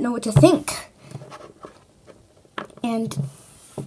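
A small plastic toy is set down with a soft tap on a table.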